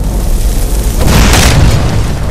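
A burst of fire roars out with a loud whoosh.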